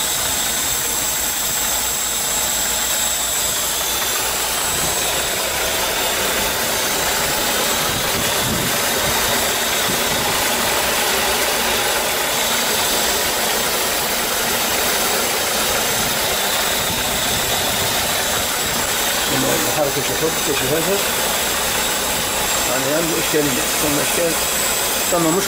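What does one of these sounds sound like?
A small petrol engine runs close by.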